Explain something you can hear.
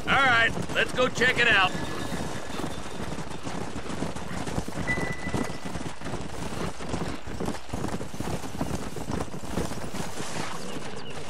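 Horses' hooves thud steadily on dry ground.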